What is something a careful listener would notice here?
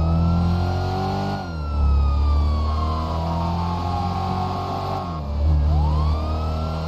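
A car engine roars and revs, dropping in pitch as it shifts gears.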